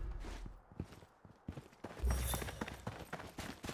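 Footsteps move quickly through grass.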